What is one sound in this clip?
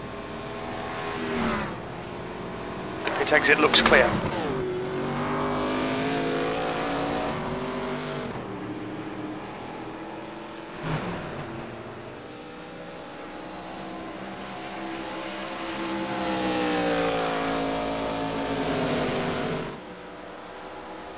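Race car engines roar at high speed, rising and falling in pitch as cars pass.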